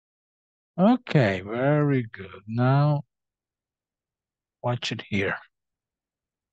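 A young woman speaks clearly and slowly, as if teaching, through a recording.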